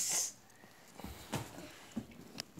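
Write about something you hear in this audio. A body thumps onto a carpeted floor.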